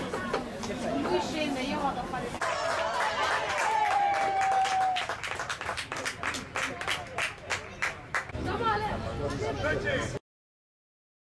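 Young men cheer and shout excitedly outdoors.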